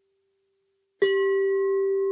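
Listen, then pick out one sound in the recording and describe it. A singing bowl is struck and rings out loudly.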